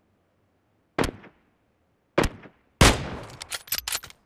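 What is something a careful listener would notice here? A sniper rifle fires a loud shot that echoes.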